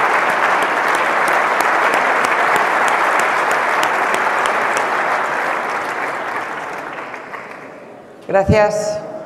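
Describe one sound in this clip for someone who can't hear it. A large crowd applauds in a big hall, then the applause slowly fades.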